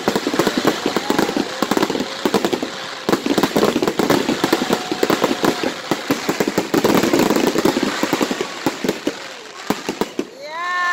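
Fireworks crackle and bang in rapid bursts outdoors.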